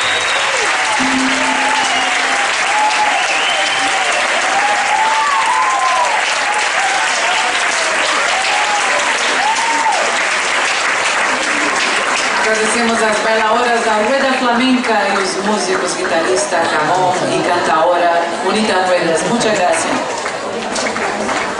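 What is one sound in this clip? A crowd of people chatters loudly nearby.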